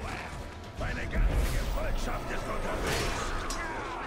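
Swords clash and thud.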